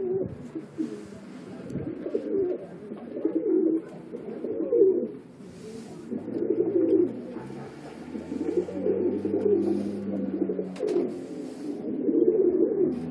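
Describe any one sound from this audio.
Pigeons coo in deep, throaty bursts close by.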